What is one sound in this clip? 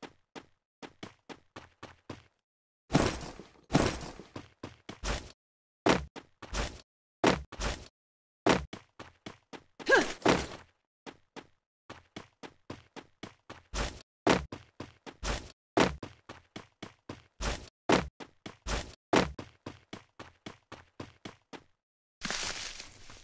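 Footsteps thud quickly and steadily on wooden floors and grass.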